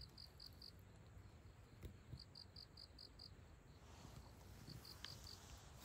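A cat's paws rustle softly through cut grass.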